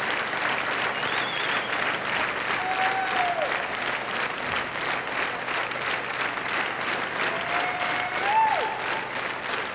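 A large crowd whistles shrilly a few times.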